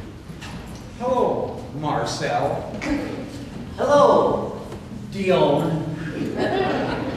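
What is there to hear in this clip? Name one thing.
A group of men and women sing loudly together.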